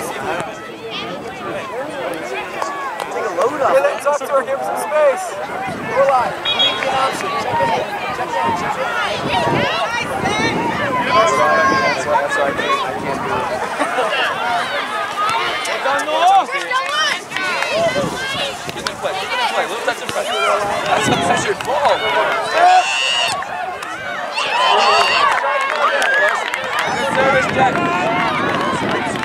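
Spectators cheer and shout outdoors nearby.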